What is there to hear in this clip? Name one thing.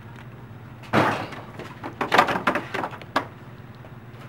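Plastic rollers knock and clack as they are lifted out of a machine.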